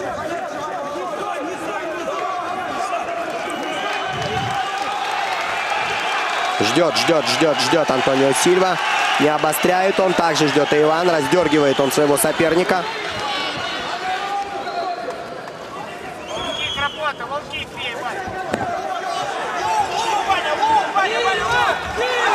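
A large crowd cheers and shouts loudly in a big echoing arena.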